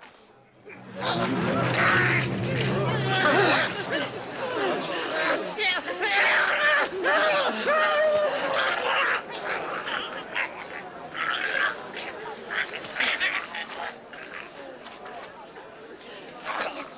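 A crowd of men and women talk and exclaim excitedly.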